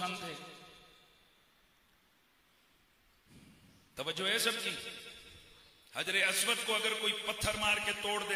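A middle-aged man speaks with animation into a microphone, heard through a loudspeaker in an echoing room.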